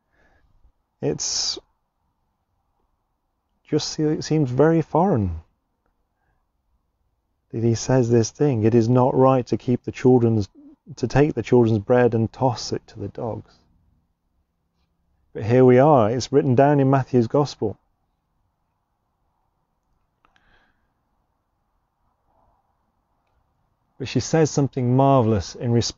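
A man speaks calmly into a close microphone, reading out with pauses.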